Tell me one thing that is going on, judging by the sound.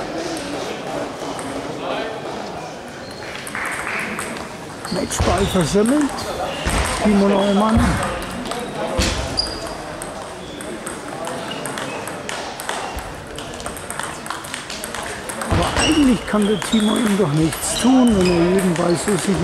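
A table tennis ball clicks back and forth in an echoing hall.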